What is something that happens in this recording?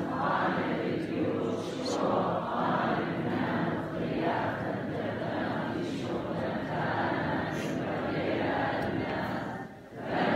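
A congregation of men and women sings together in a slow chant.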